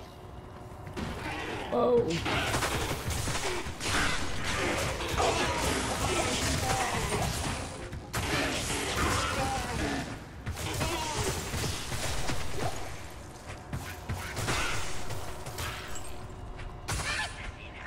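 Game combat sounds of clashing blows and crackling spells play.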